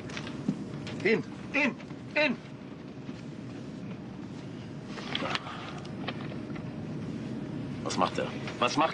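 A man speaks sharply and with agitation nearby.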